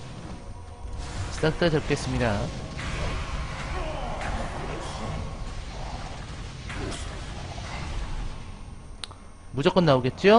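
Magic spells crackle and burst repeatedly.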